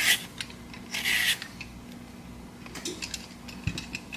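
A peeler scrapes the skin off a cucumber.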